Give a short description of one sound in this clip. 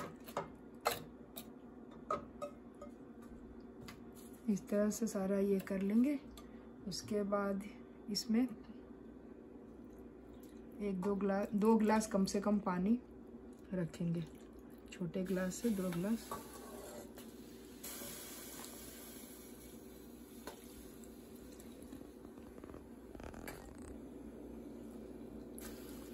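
Metal bowls clink and scrape against a steel pot.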